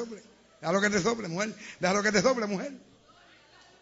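A man preaches loudly and with animation through a microphone.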